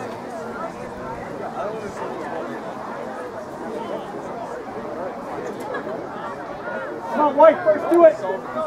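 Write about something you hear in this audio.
A crowd of spectators chatters in the open air.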